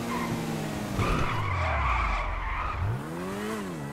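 Tyres screech as a vehicle skids around a turn.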